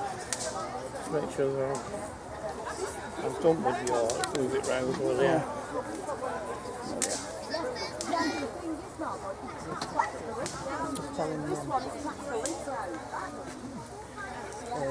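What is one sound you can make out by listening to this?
A woman talks nearby, outdoors.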